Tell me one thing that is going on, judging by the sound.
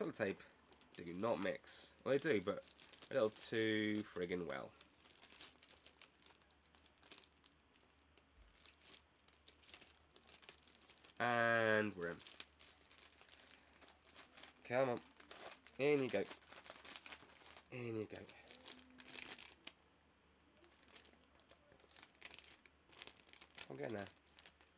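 Cardboard packaging rustles in a man's hands.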